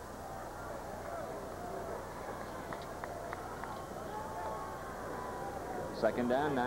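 A crowd murmurs and cheers in a large outdoor stadium.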